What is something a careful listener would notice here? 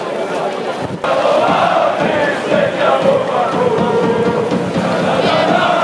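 A crowd sings and chants loudly.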